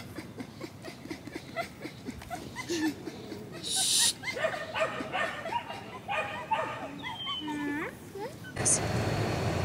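A young girl talks and laughs outdoors.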